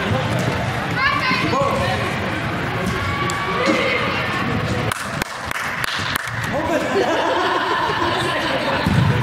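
Players shout to each other across a large echoing hall.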